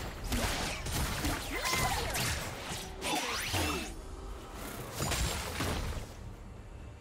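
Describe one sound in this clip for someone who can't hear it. Spells crackle and burst in quick succession.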